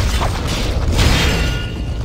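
A sword slashes with sharp metallic swishes.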